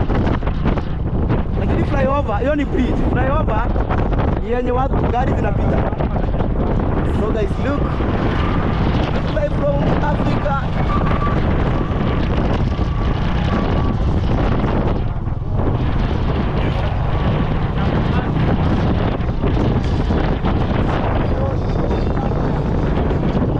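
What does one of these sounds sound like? Wind rushes past, buffeting loudly.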